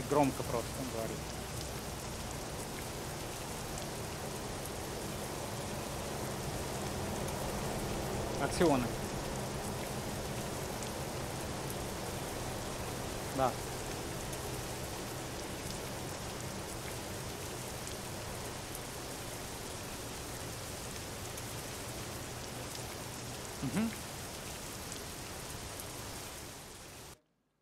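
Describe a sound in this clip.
Rain patters steadily.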